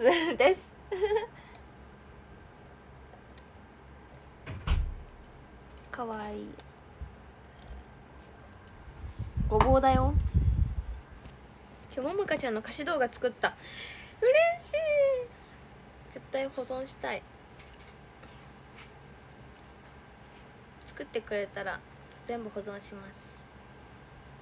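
A young woman talks casually and close up, heard through a phone microphone.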